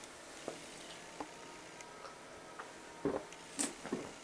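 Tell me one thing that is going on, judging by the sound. A man gulps a drink from a can.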